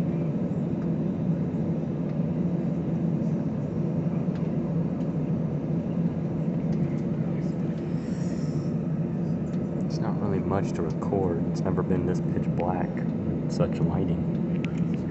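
The engines of a jet airliner roar inside the cabin during takeoff.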